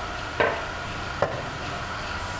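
Wood knocks against a spinning disc.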